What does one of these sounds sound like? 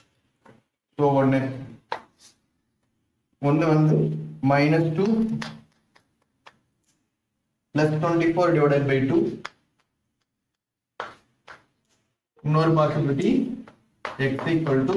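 A young man explains calmly and clearly, close by.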